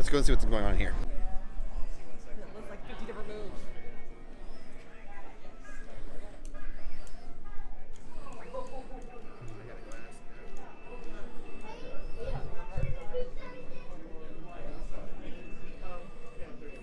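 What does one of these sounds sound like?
A crowd murmurs in a large room.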